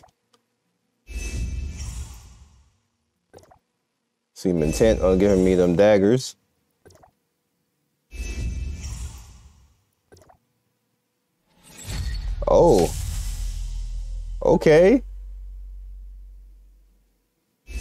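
Electronic whooshing effects sweep in with each item reveal.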